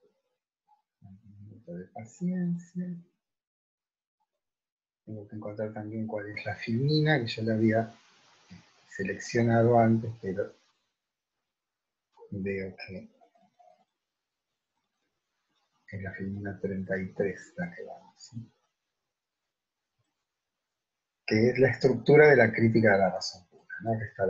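An elderly man talks calmly and slowly in short bursts, close to a microphone.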